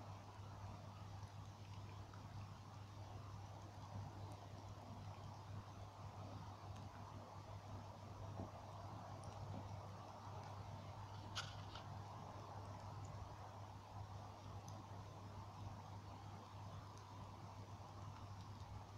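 Burning logs in a bonfire crackle and pop softly.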